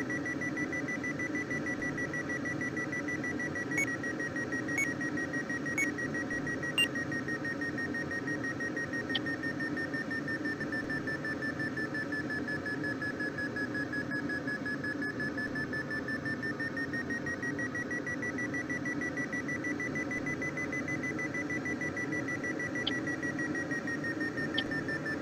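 Wind rushes steadily past a gliding aircraft.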